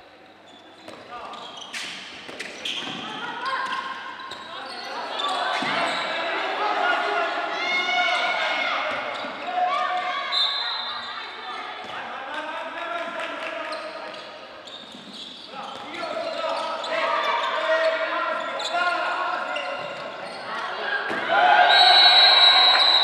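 A crowd of spectators chants and cheers.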